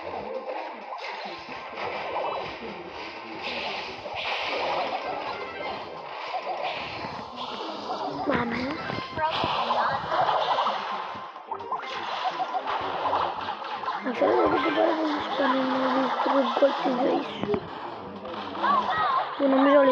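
Video game shots and blasts go off in quick bursts.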